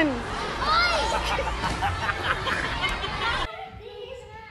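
Children shout and cheer nearby.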